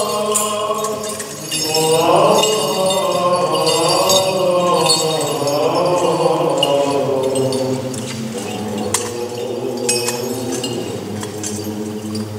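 An elderly man chants in a slow, steady voice, echoing in a large hall.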